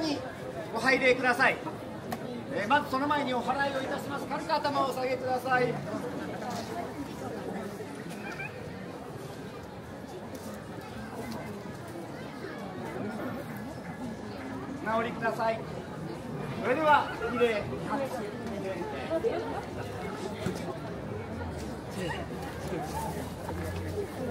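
A crowd murmurs outdoors in the open air.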